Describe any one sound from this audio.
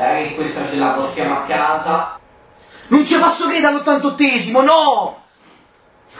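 A young man shouts excitedly close to a microphone.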